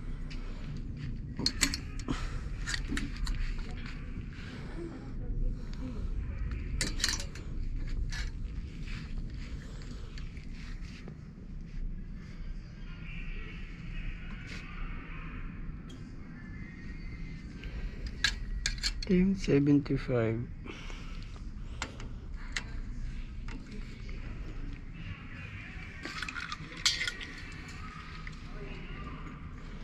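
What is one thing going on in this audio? Plastic hangers click and scrape along a metal rail.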